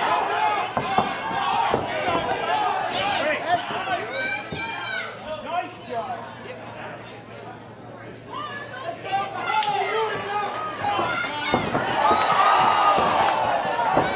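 Kicks and punches thud against bodies.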